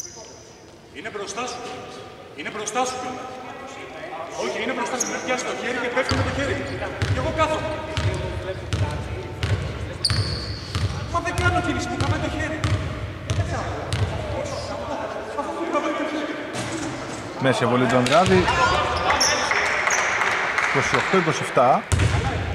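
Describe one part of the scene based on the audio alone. Men shout and call out to one another in a large echoing hall.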